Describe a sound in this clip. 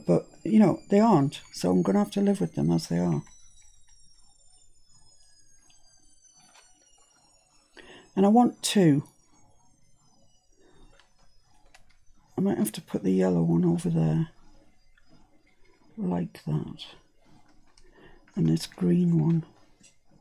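A middle-aged woman talks calmly into a close microphone.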